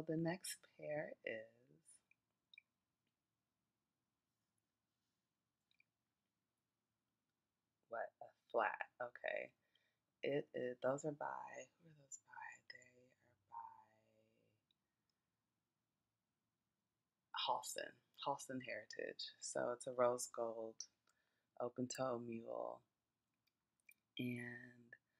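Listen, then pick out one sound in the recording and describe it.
A woman talks calmly and close by, with pauses.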